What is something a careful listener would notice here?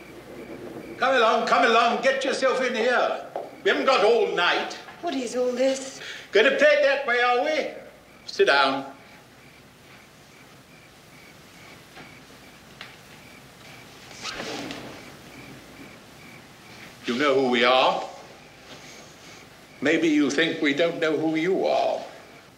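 An elderly man speaks calmly and firmly nearby.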